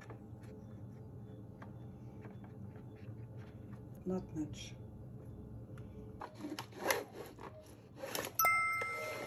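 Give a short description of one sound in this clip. A plastic mould clicks and rattles.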